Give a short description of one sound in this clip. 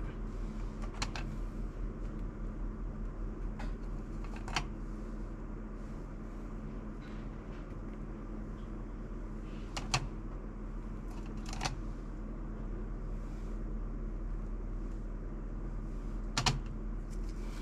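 Plastic dishes click and tap against each other now and then.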